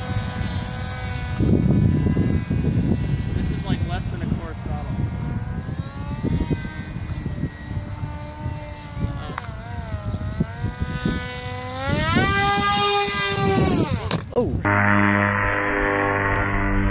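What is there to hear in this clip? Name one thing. A model plane's electric motor whines overhead, its pitch rising and falling with the throttle.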